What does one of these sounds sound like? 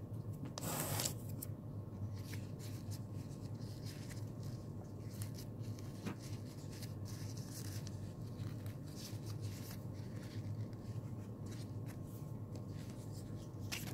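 Paper rustles and crinkles softly as hands fold it.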